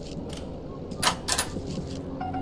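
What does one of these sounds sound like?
A door swings open with a click.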